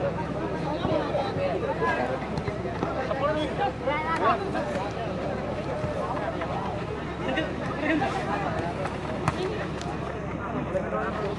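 A large outdoor crowd of spectators chatters and shouts.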